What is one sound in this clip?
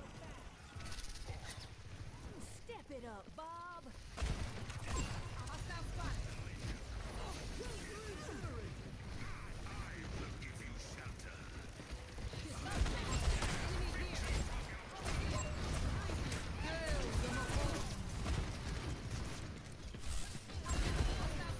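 Game explosions and ability effects boom and whoosh.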